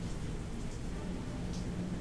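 A fire crackles softly in a hearth.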